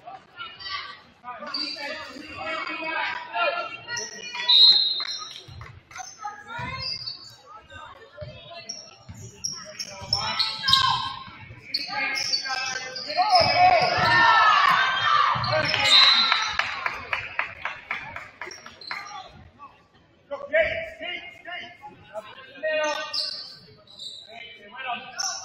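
A crowd of spectators chatters and calls out in an echoing gym.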